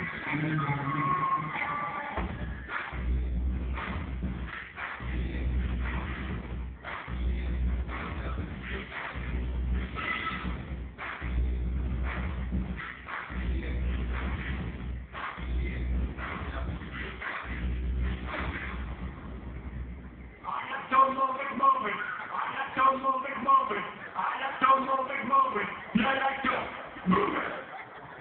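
Dance music with a heavy thumping beat plays loudly over loudspeakers in a large echoing hall.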